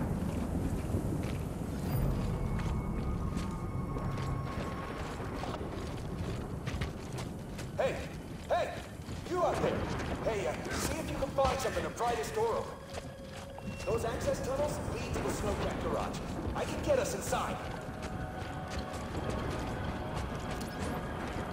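Footsteps crunch through snow at a running pace.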